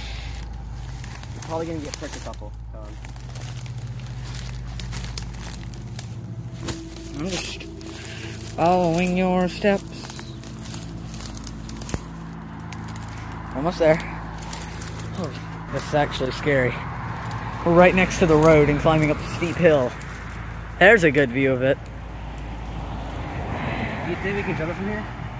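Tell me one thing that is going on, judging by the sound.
Footsteps swish and rustle through tall grass and weeds.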